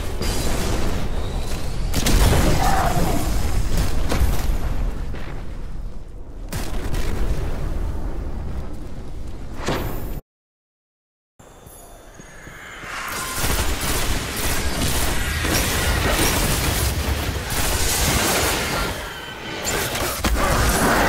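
Game gunfire bursts in rapid shots.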